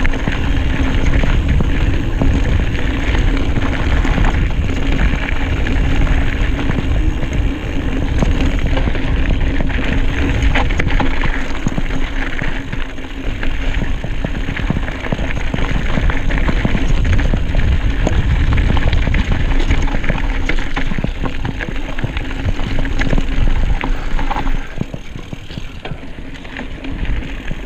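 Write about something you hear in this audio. Wind buffets loudly against the rider outdoors.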